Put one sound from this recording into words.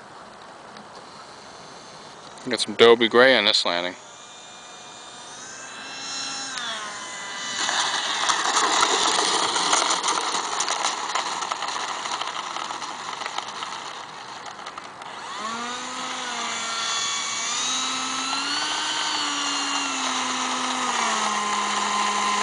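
A model jet engine whines, its pitch sliding up and down.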